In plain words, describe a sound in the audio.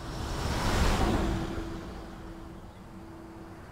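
A heavy truck rumbles past close by and fades into the distance.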